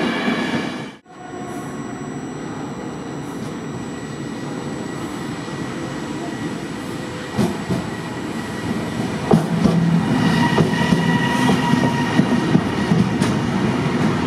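A freight train approaches and rumbles past close by.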